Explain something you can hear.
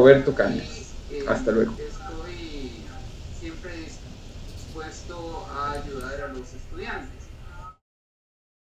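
A man speaks calmly into a microphone, heard through an online call.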